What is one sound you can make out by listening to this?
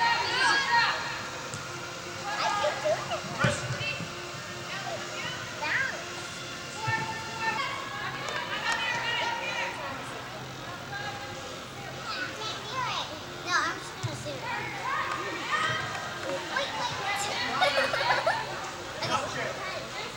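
A soccer ball is kicked with dull thuds.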